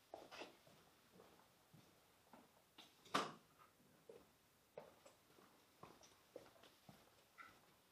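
Footsteps cross an echoing room.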